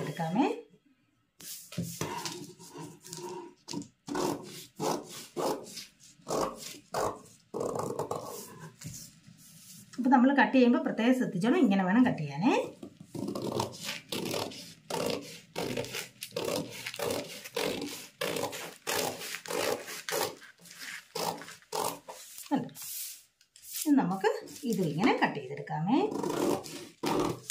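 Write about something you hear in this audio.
Scissors snip through cloth again and again.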